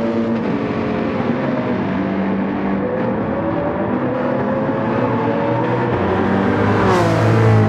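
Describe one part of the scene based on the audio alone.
Racing car engines roar steadily nearby.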